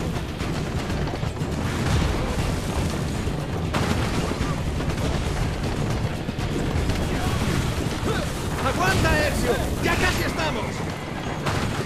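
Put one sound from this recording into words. Explosions burst nearby.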